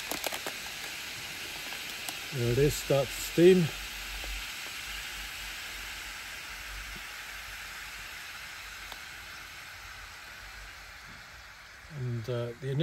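Steam hisses softly from a heating food pouch.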